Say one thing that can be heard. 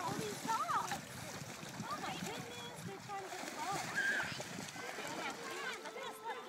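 Dogs splash through shallow water.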